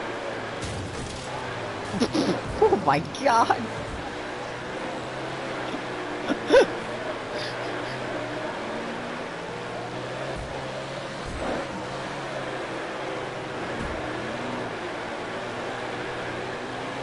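A racing car engine roars steadily at speed.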